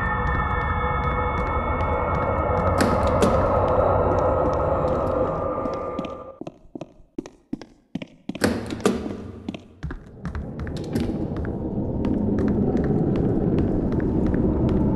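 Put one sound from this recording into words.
Footsteps tap steadily along a hard floor.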